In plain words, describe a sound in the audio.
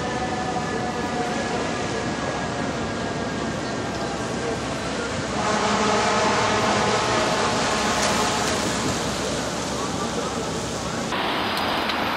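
City traffic hums in the rain.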